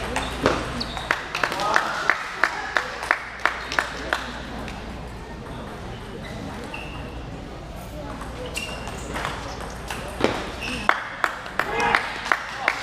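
A table tennis ball clicks back and forth across a table in quick rallies.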